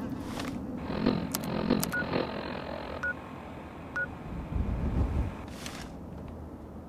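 A handheld device beeps and clicks.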